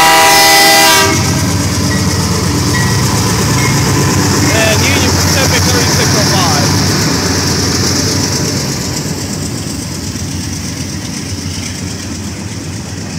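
A freight train rumbles and clatters past on the tracks.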